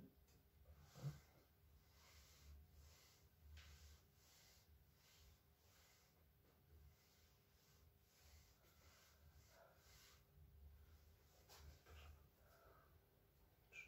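Hands rub and press on a person's back with soft rustling.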